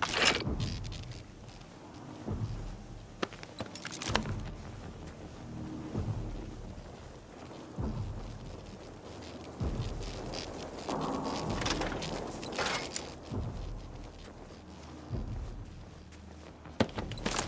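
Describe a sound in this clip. Footsteps thud slowly on grass.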